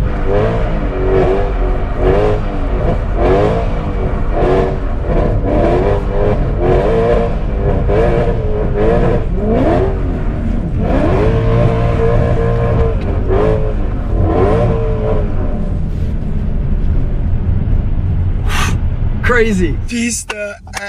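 A car engine revs up and down repeatedly as it accelerates and shifts gears.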